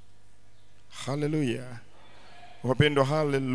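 A man speaks with emotion into a microphone, heard through loudspeakers.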